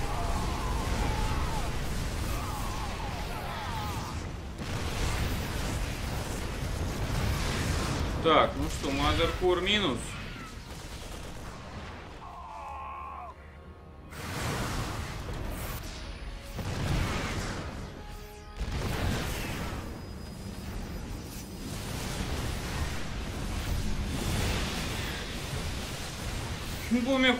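Laser shots and explosions crackle and boom in a busy battle.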